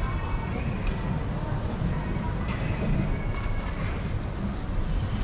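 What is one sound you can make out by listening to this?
Voices murmur far off in a busy street.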